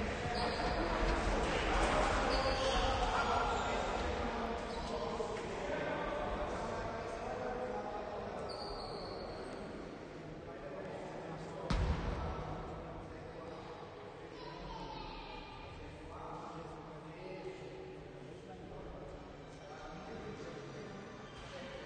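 Young men talk and call out to each other in a large echoing hall.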